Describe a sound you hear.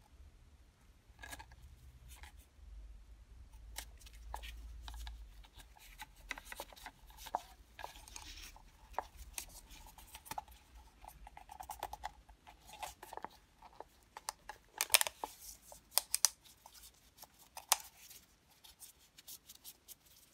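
Plastic parts click and knock as a filter is pushed into a housing.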